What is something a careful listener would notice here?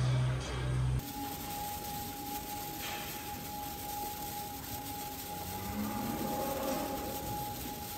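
A rotating cow brush whirs steadily with a motor hum.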